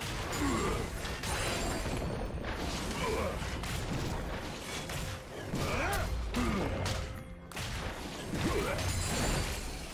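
Magical blasts and blows clash in a fast fight.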